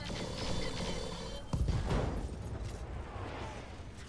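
Heavy weapons fire with a loud blast.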